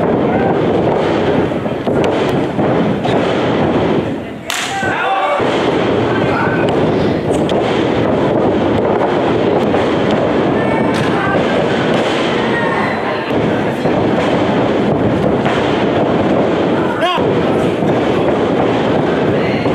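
A small crowd cheers and chatters in a large echoing hall.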